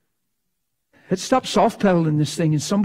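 An elderly man speaks with animation through a microphone in a large room.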